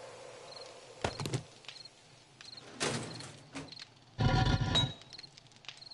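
A game menu opens and closes with short interface sounds.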